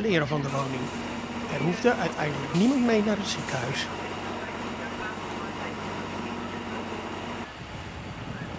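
Water hisses from a fire hose.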